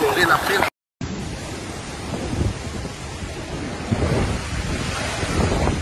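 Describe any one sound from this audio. Large waves crash and splash against the shore.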